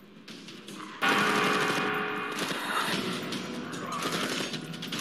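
A heavy gun fires a rapid, loud burst.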